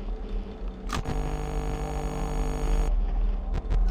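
Loud static hisses and crackles.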